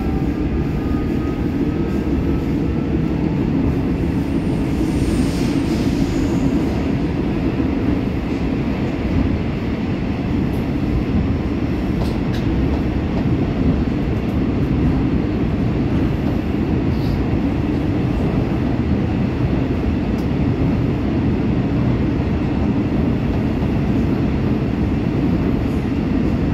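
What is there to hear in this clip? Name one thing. A subway train rumbles loudly and steadily along the tracks.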